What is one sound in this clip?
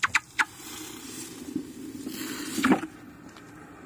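A hot metal block plunges into water with a loud hiss and sizzle.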